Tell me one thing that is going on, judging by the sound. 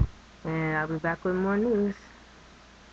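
A young woman speaks in a slow, drawn-out, sing-song voice close to the microphone.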